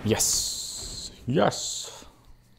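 A young man speaks briefly close to a microphone.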